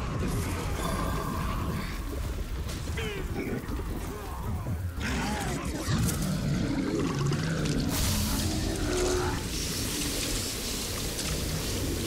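A sword swishes and clashes in a fight.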